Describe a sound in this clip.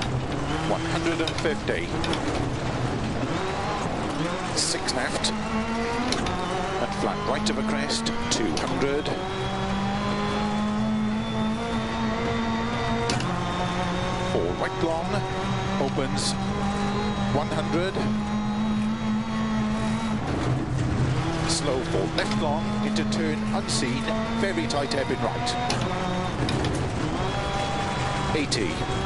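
A rally car engine roars and revs up and down through the gears.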